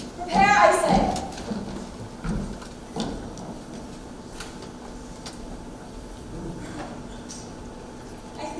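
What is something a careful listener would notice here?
Heels tap on a wooden floor.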